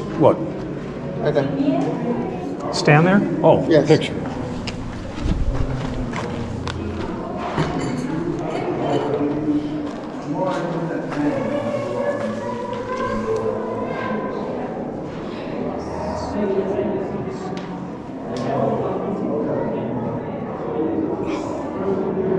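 Men and women chatter and talk nearby in an echoing space.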